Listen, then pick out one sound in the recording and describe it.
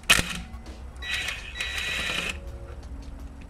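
A cordless impact driver whirs in short bursts.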